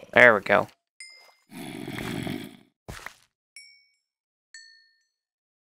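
Items pop with short, high chimes.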